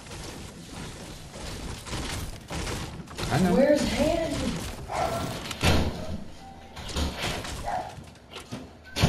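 A pickaxe strikes wooden furniture with repeated sharp thwacks.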